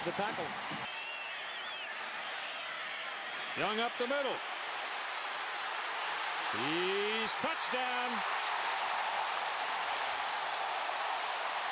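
A large stadium crowd roars, swelling louder and cheering.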